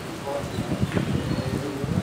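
A checker piece clacks on a plastic board.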